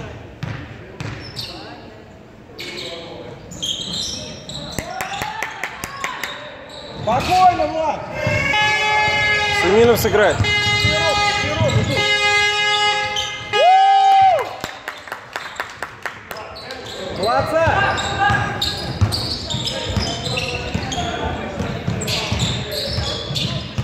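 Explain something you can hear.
A basketball bounces on a wooden floor with dull thumps.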